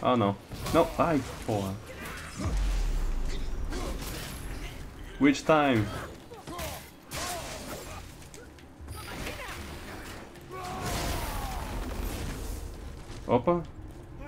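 Blows thud and clash in a video game fight.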